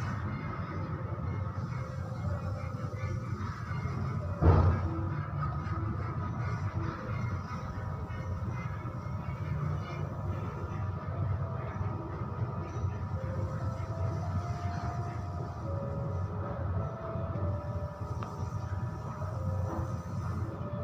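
A man scrapes at a wall by hand.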